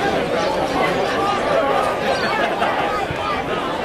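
Spectators chatter and call out nearby.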